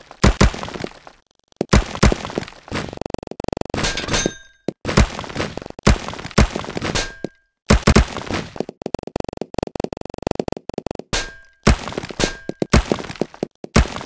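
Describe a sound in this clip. Small balls clatter and pop in quick bursts.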